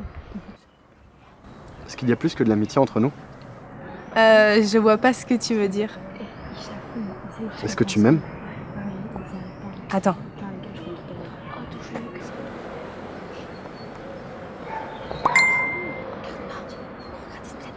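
Young women chatter and laugh nearby.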